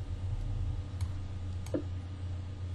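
A short click sounds as a chess piece is moved.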